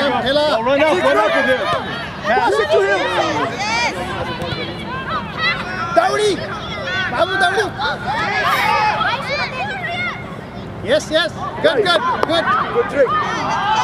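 A soccer ball is kicked with dull thumps.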